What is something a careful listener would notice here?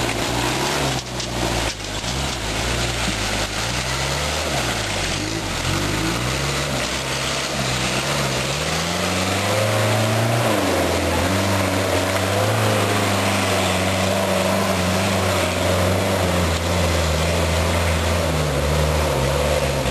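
An off-road vehicle's engine roars and revs, rising and falling in pitch.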